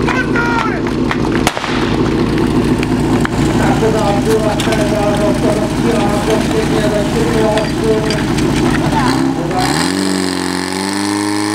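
A pump engine drones loudly nearby.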